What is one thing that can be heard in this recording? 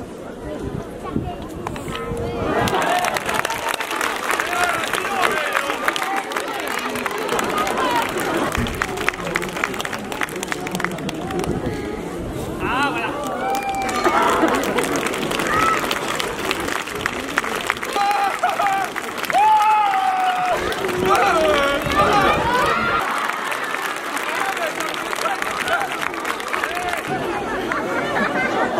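Children and adults in an outdoor crowd cheer and call out excitedly.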